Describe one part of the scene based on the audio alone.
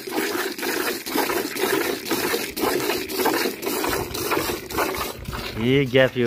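Milk squirts in quick rhythmic spurts into a metal bucket.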